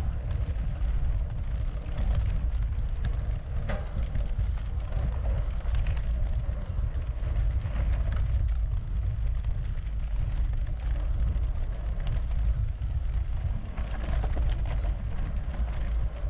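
Wind rumbles loudly against a moving microphone.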